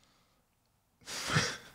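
A young man sighs heavily close to a microphone.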